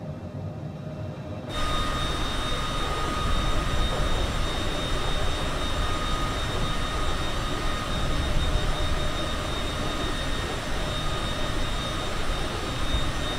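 Jet engines whine and roar steadily.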